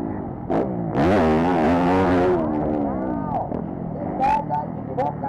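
A motorcycle engine revs hard, rising and falling in pitch close by.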